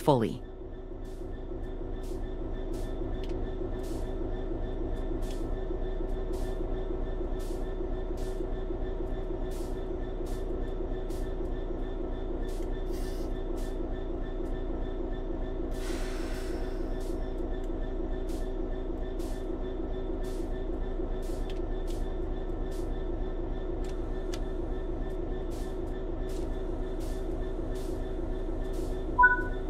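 A train's engine hums steadily from inside the cab.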